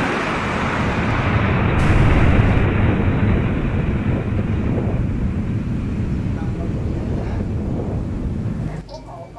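A small model rocket motor roars with a hissing whoosh and fades.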